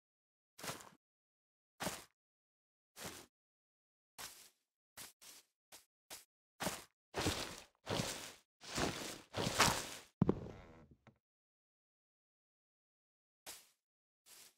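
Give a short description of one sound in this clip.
Leaves rustle and crunch in short bursts, as if being struck and broken.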